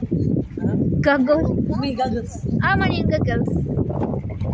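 A young child talks excitedly close by.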